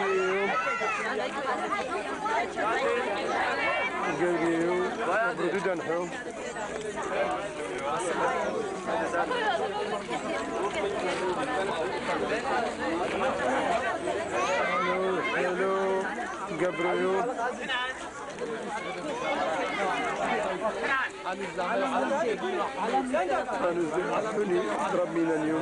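Several men and women talk and laugh together close by, outdoors.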